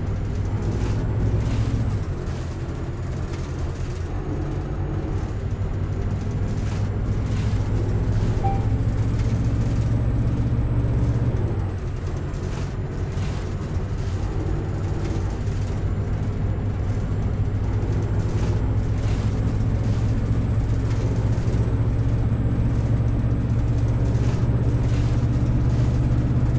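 A bus engine hums and drones steadily as the bus drives along, dropping briefly in pitch and then climbing again.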